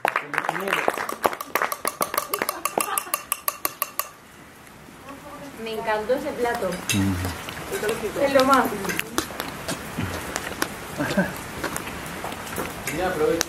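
A group of young men and women chat and laugh close by.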